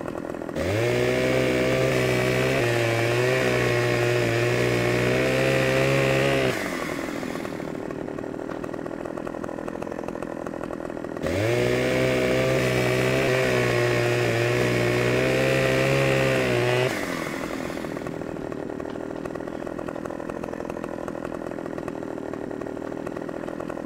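A chainsaw idles with a low steady rattle.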